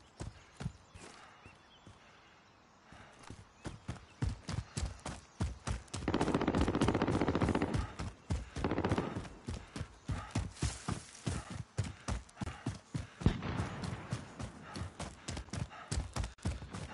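Footsteps thud quickly over dry ground.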